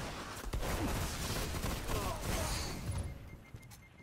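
A gun fires a rapid burst of shots.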